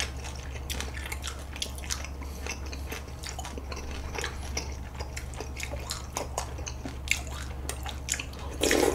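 Two young men chew wet, saucy food close to a microphone, with squelching and smacking sounds.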